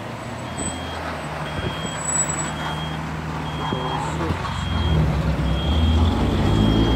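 A vehicle engine idles with a low steady hum nearby.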